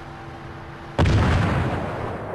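Heavy guns fire with a deep, rumbling boom.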